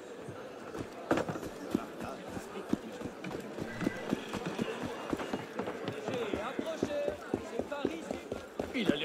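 Quick footsteps run over ground.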